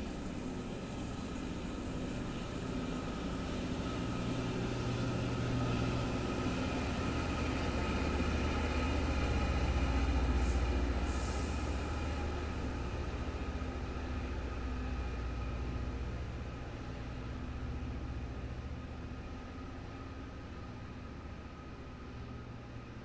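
Diesel locomotive engines drone steadily nearby.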